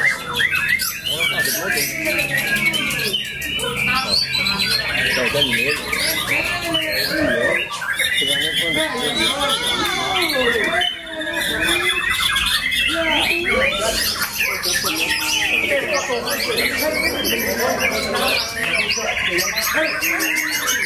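A songbird sings close by in loud, varied whistles and trills without pause.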